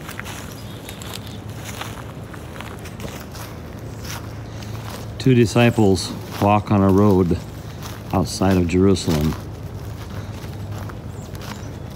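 Footsteps crunch along a dry forest path.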